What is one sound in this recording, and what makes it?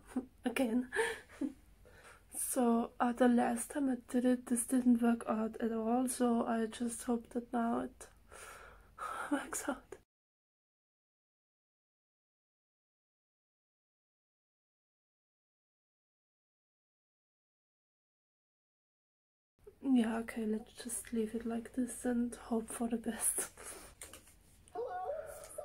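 A young woman talks calmly, close by.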